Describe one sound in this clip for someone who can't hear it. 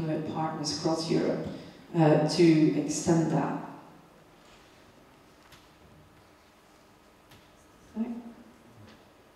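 A woman speaks into a microphone in a large hall, pausing between phrases.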